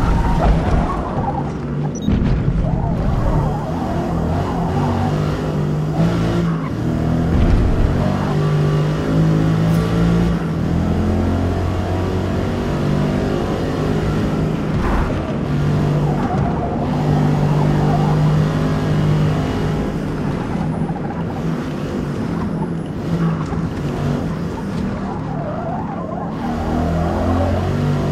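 A car engine roars, revving up and down through the gears.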